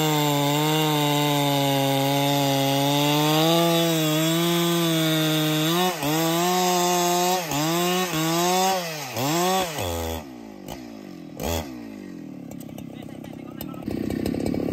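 A chainsaw engine roars loudly while cutting wood, then revs up and down and drops to idle.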